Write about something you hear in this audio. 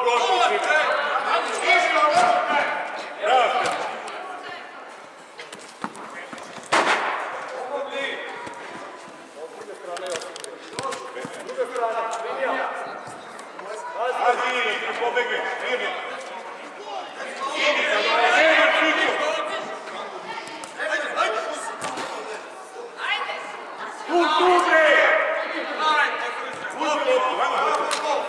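A man shouts loudly close by in a large echoing hall.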